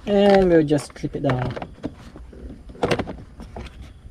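A plastic panel clicks and snaps into place.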